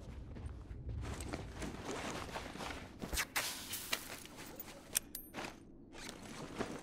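Objects rattle and scrape as items are crafted by hand.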